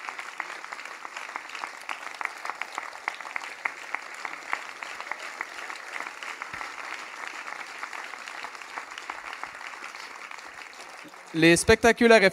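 An audience claps and applauds steadily in a large hall.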